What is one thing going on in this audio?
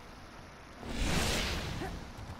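A heavy punch whooshes and thuds.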